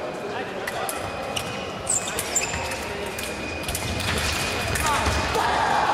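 Fencing blades clash and click during a bout.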